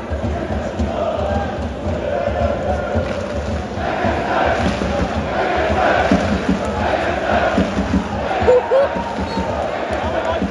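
A large crowd of fans chants and sings loudly outdoors.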